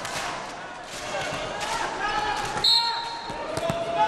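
A volleyball is spiked with a sharp smack.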